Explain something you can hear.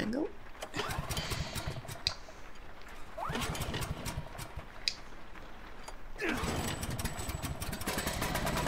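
A small engine coughs and sputters without starting.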